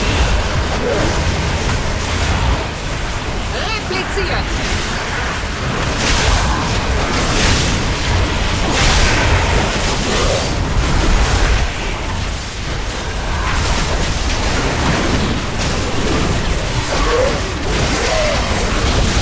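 Magic blasts and combat effects crackle and boom throughout a fantasy game battle.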